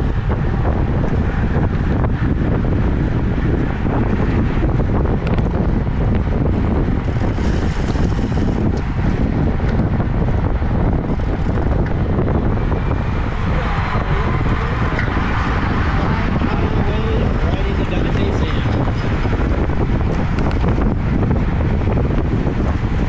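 Strong wind buffets a microphone while riding fast outdoors.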